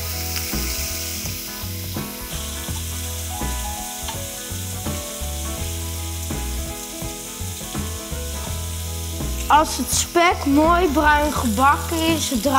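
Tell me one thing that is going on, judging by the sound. Bacon sizzles in a hot frying pan.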